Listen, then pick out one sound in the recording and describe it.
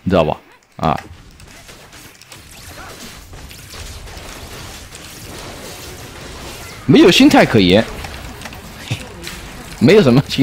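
Game sound effects of spells and clashes play.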